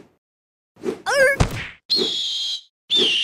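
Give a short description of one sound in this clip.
An eagle screeches.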